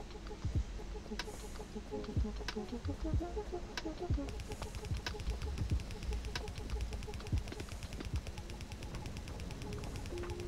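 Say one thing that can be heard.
Machines clank and thump steadily, with sharp clicks now and then.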